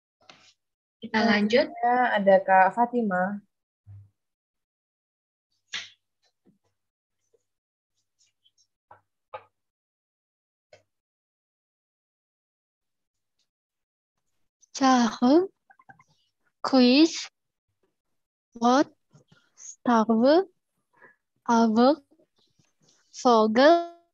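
A woman speaks clearly over an online call, pronouncing words slowly with pauses.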